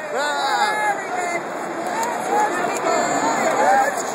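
A man close by shouts and cheers.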